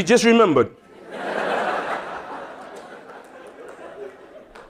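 An audience laughs together in a large hall.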